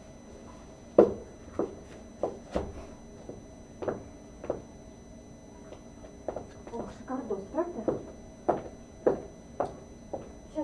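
Footsteps thump nearby.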